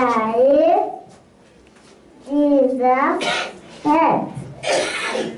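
A young girl sings loudly through a microphone.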